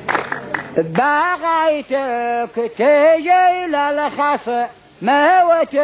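A man sings into a microphone, heard through a loudspeaker.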